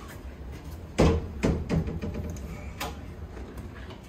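A door handle clicks and a door swings open.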